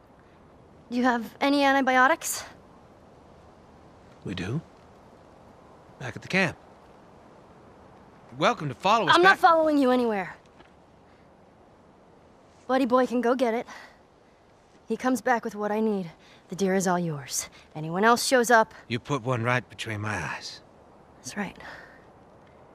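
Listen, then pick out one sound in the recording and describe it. A young girl speaks tensely and defiantly.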